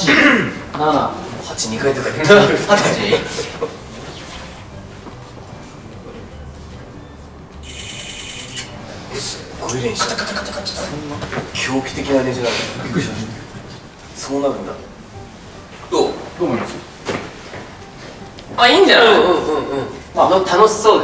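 Young men talk and laugh with animation close by.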